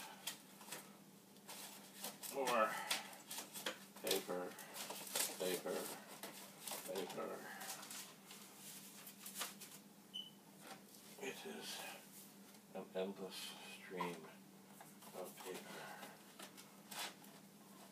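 Paper and small objects rustle and clatter as they are handled.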